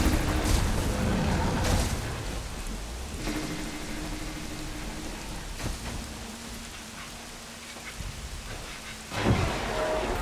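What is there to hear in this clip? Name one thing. Tall grass rustles as someone moves through it.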